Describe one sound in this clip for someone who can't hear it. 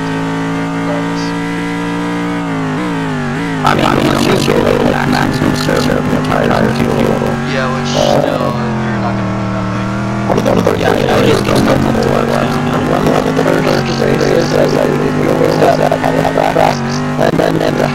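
A racing car engine roars at high revs, its pitch dropping and rising as gears change.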